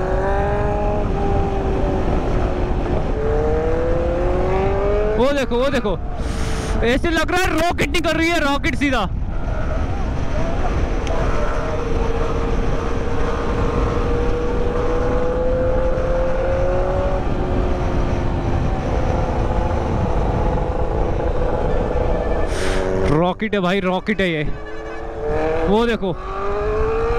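A motorcycle engine hums steadily and rises and falls in pitch as it revs.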